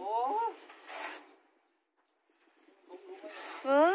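A shovel scrapes in dirt.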